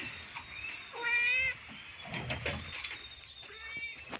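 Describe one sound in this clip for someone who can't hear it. A cat meows loudly up close.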